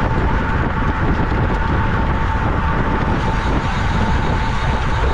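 Wind rushes loudly past a fast-moving bicycle.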